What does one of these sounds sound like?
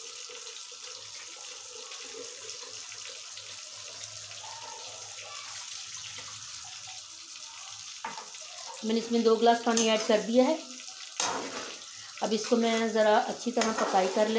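Thick sauce simmers and bubbles softly.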